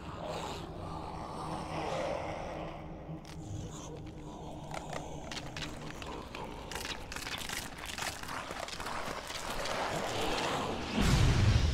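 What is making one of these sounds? A huge monster growls and roars.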